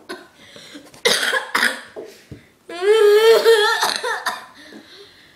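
A young child cries and wails loudly close by.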